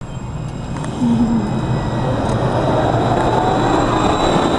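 A tram hums and whines rising as it pulls along.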